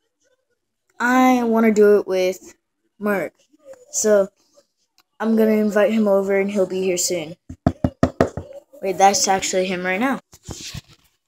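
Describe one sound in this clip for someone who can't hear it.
A boy talks close to a device microphone, with animation.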